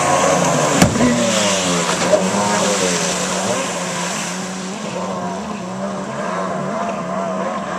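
A jet ski engine roars and revs up and down.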